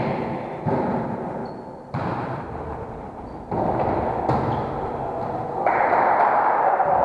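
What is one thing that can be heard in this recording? Sneakers shuffle and squeak on a wooden floor.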